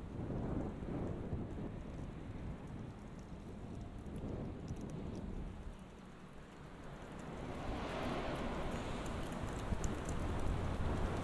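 Wind blows outdoors, rumbling low and unevenly.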